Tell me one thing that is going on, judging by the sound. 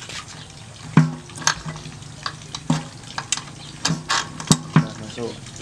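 A metal tool clicks and taps against a bolt.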